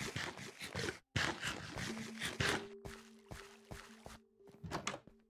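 Footsteps crunch quickly over grass and gravel.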